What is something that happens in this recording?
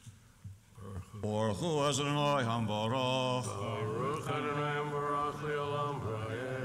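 An elderly man chants a melody into a microphone.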